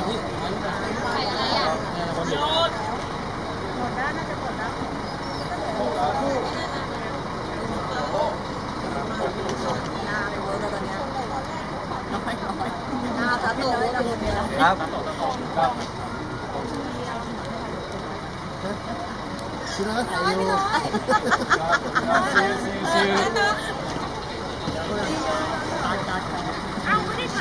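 A crowd of young women and men chatter and call out excitedly outdoors.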